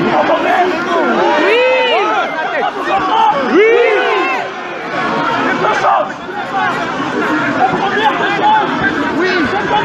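A man shouts through a megaphone.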